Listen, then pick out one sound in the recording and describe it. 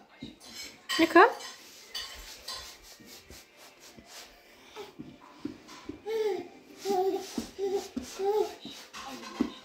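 A baby babbles and squeals up close.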